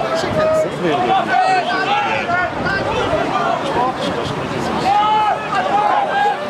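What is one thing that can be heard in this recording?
Men and young men shout and cheer loudly outdoors.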